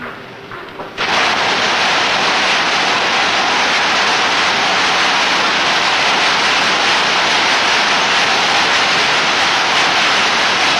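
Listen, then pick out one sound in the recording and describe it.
Machines clatter and roar loudly in a large hall.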